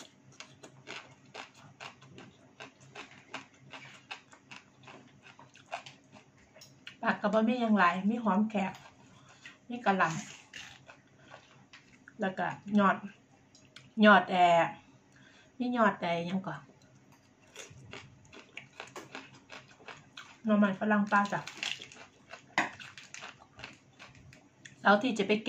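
A woman chews and crunches food loudly.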